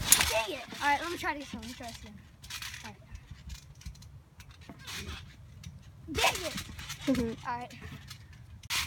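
A young boy talks and shouts excitedly close by.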